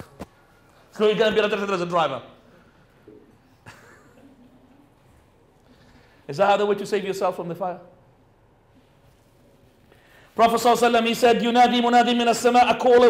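A man laughs loudly close to a microphone in short bursts.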